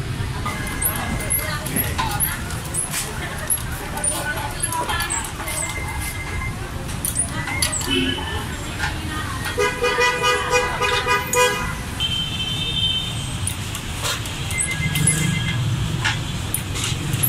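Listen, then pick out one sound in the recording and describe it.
A hydraulic press handle clicks and creaks as it is pumped.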